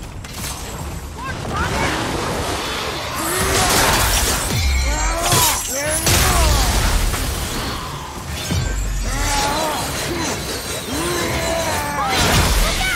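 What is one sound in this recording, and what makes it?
Metal weapons clash and strike with sharp impacts.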